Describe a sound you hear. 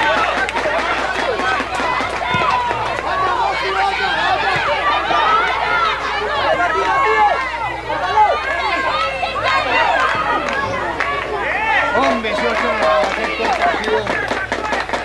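Children shout and call out excitedly across an open field.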